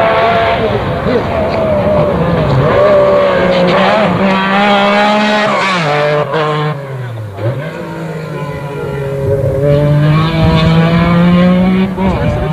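A Metro 6R4 rally car's V6 engine roars at full throttle as it approaches and passes.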